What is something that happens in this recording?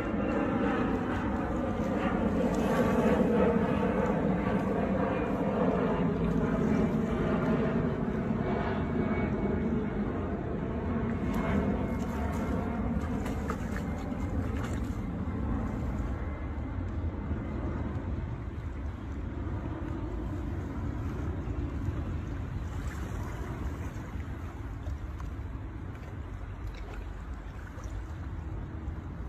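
A hand splashes and swishes in shallow water.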